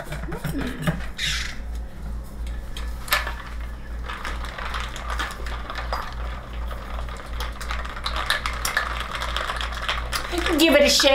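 A plastic container rattles and crinkles in hands.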